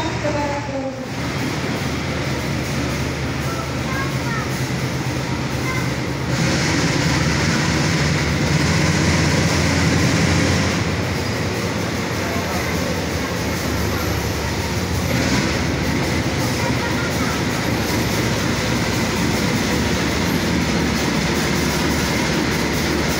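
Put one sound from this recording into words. A train rumbles slowly along the tracks, with steel wheels clattering on the rails.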